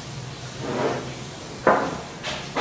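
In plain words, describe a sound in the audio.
A glass bowl is set down on a wooden table with a knock.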